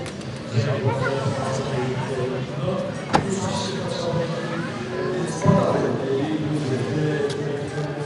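A man talks with animation into a microphone, heard through a loudspeaker outdoors.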